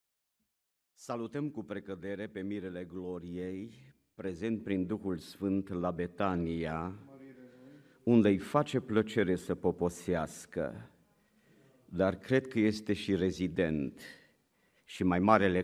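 A middle-aged man speaks steadily through a microphone in a large echoing hall.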